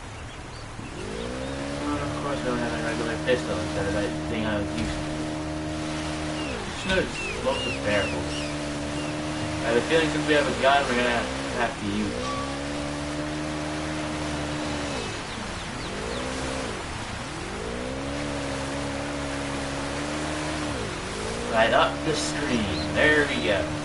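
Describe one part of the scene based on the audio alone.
Water splashes and sprays against a jet ski.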